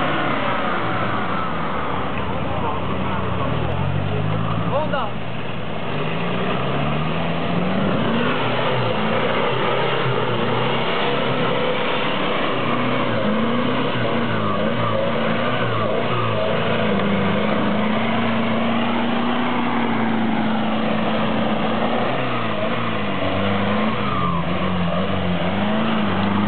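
An off-road vehicle's engine revs and strains up and down as it climbs through mud.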